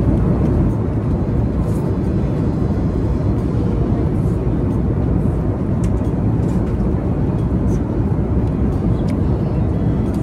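A steady low roar of an airplane cabin fills the air.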